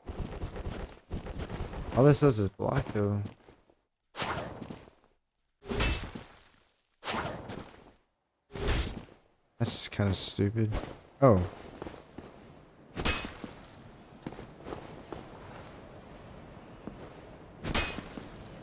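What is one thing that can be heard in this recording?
A sword swings and clangs.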